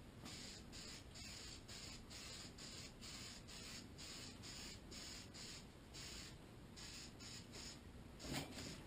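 A spray can hisses in short, quick bursts.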